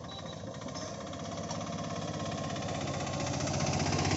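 An auto-rickshaw engine putters close by.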